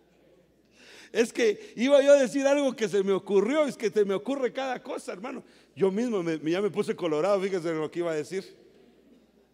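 A man preaches with animation into a microphone, heard through loudspeakers in a large echoing hall.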